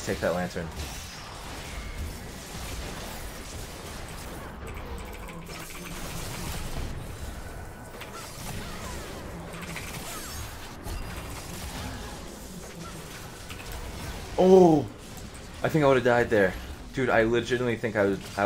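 Game fight sounds clash and crackle in quick bursts.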